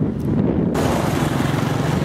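Cars drive past on a road.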